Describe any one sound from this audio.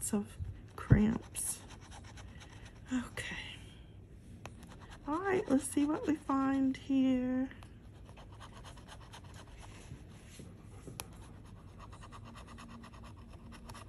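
A metal bottle opener scrapes across a scratch card.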